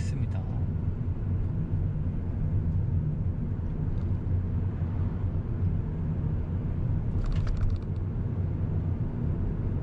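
A car engine hums steadily with a low rumble of tyres on the road from inside the car.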